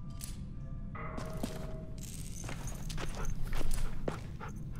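A dog whimpers softly.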